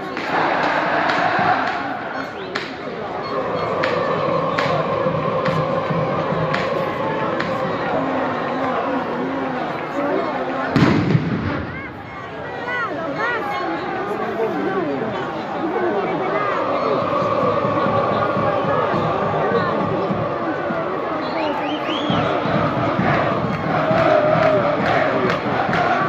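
A large crowd of fans chants loudly in unison, echoing across a stadium.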